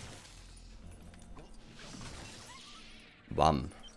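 Objects smash and scatter into pieces.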